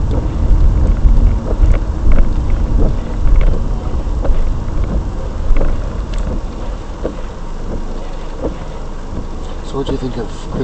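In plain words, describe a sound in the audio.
A car engine idles with a low rumble, heard from inside a car.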